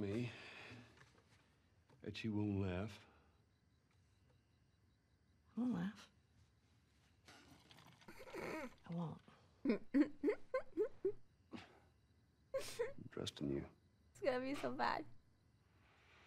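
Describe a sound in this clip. A man speaks quietly and gently.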